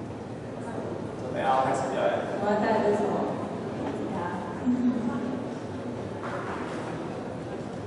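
A boy sings into a microphone through a loudspeaker.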